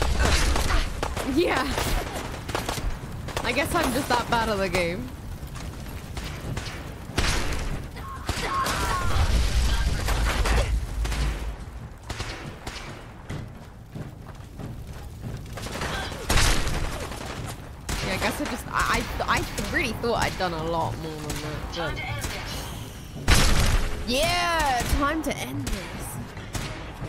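A young woman talks and laughs with animation into a close microphone.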